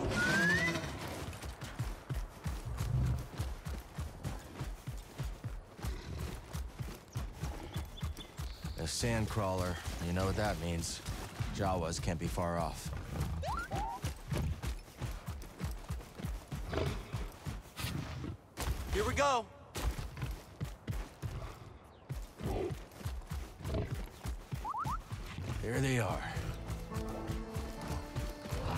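A large animal's feet thud steadily as it runs over rocky ground.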